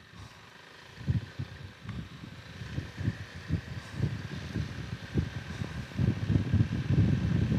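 Wind buffets and rumbles against the rider.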